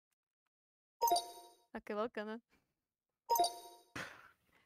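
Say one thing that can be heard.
A short electronic chime rings twice.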